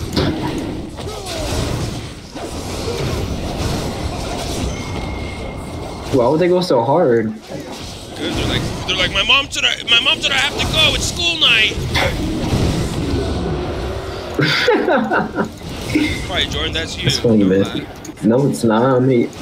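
Game sound effects of fighting and spells play throughout.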